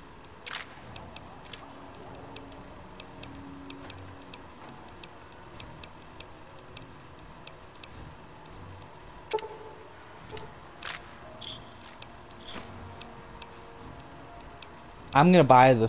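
Soft interface clicks tick rapidly as a menu scrolls.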